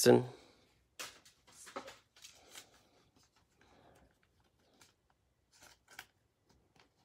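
Trading cards slide and tap against each other.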